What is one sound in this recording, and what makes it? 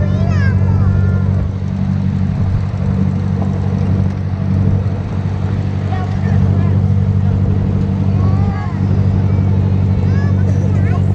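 A small tractor engine chugs steadily up close.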